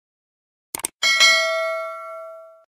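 A bell chimes and slowly rings out.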